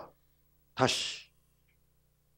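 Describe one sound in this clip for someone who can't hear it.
A man speaks calmly through a headset microphone.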